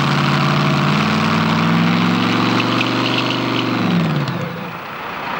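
A race car engine roars loudly and then winds down.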